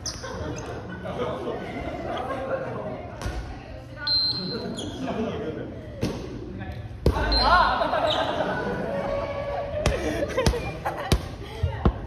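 Several young people talk and call out to each other in a large echoing hall.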